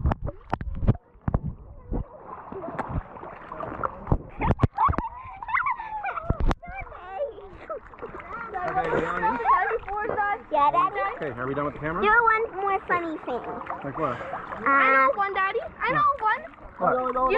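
Water splashes and laps at the surface.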